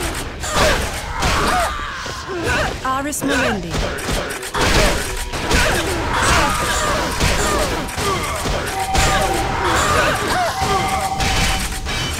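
Weapons clash and spells burst in a fight.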